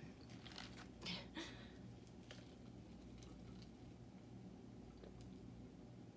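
A young woman sips from a metal tumbler.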